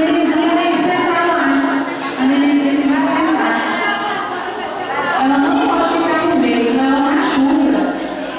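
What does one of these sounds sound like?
A woman speaks into a microphone over loudspeakers.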